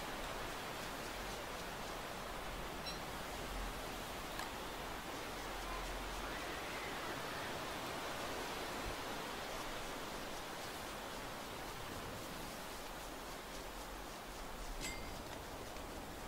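Footsteps patter across dry grass.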